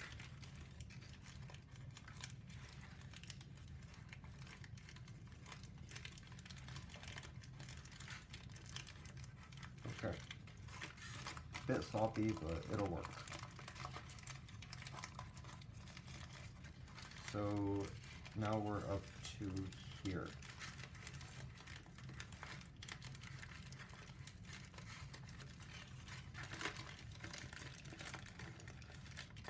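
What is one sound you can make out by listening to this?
Stiff paper rustles and crinkles as it is folded by hand.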